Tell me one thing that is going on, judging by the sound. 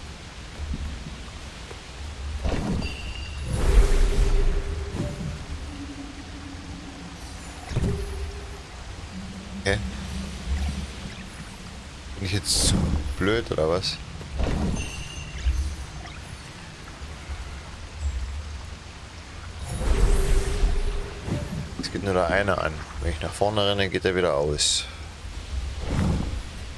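Waterfalls rush and splash into a stream.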